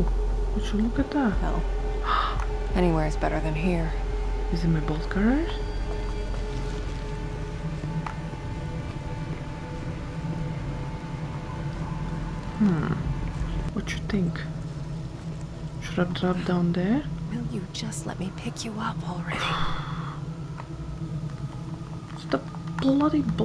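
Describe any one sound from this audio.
A young woman talks calmly into a microphone close by.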